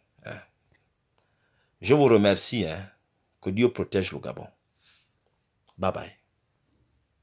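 A middle-aged man speaks calmly and close by, in short bursts.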